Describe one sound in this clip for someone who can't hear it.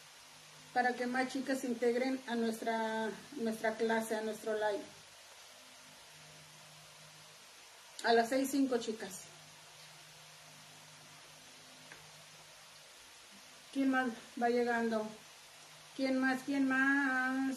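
A woman speaks calmly close by, with pauses.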